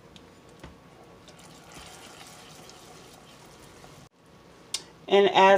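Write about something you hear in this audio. A spoon stirs liquid in a bowl.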